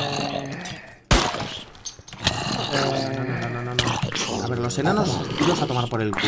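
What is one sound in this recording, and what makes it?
A sword strikes with a sharp hit.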